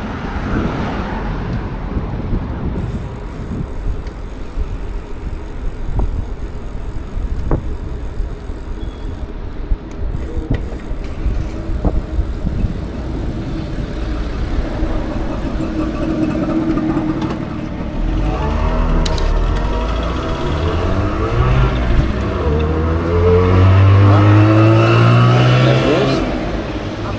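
Wind buffets the microphone of a moving bicycle.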